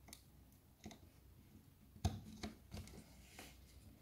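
A small circuit board snaps onto pins with a faint click.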